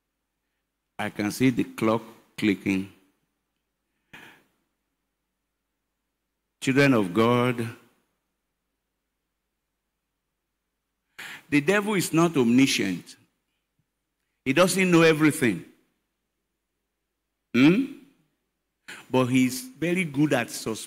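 An elderly man preaches with emphasis into a microphone, heard through loudspeakers, with long pauses.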